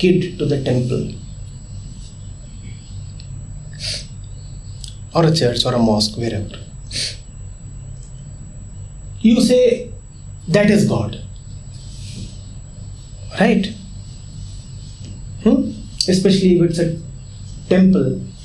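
A man speaks calmly and deliberately into a close microphone, with pauses between phrases.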